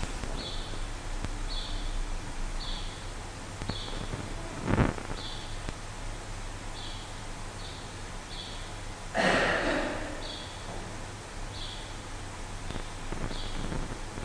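A man talks quietly in a large echoing hall.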